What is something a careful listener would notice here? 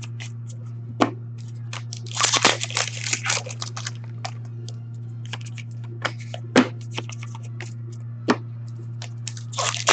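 Plastic-sleeved cards rustle and click as hands sort them into piles.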